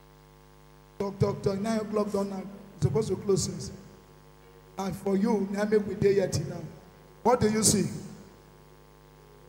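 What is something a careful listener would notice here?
A man speaks into a microphone with animation, heard through loudspeakers.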